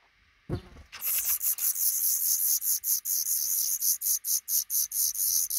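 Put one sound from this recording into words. Baby birds chirp loudly and rapidly, begging close by.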